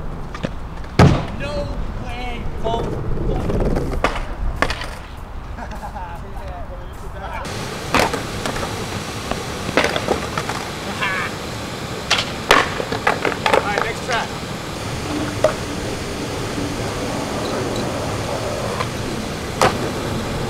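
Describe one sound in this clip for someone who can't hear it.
A skateboard clatters on concrete.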